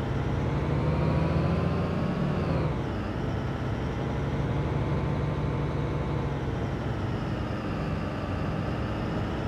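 A truck engine rumbles steadily, its pitch rising and then dropping sharply as it shifts gear.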